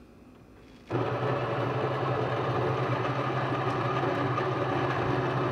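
A small kitchen appliance hums steadily.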